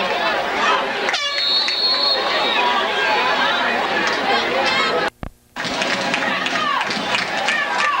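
A crowd cheers and shouts in an outdoor stadium.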